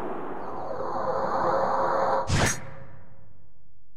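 A sword swishes through the air with a loud whoosh.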